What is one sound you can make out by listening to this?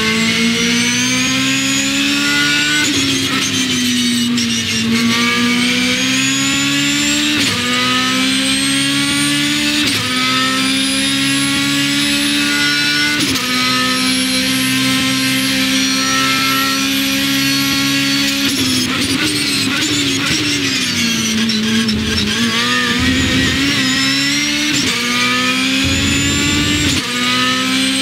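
A racing car engine roars loudly, rising in pitch and dropping sharply with each gear change.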